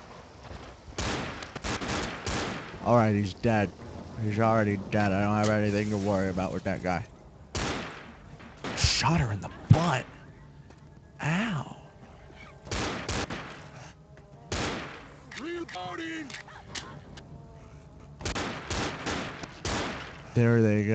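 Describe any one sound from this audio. A pistol fires sharp shots in quick bursts.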